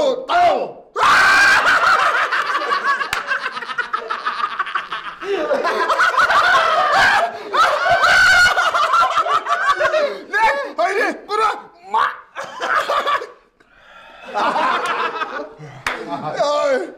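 A group of men laugh loudly.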